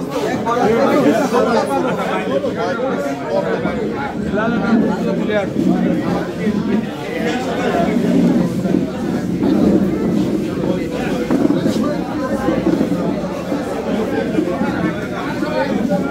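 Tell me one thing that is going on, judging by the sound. A crowd of men talks at once, close by.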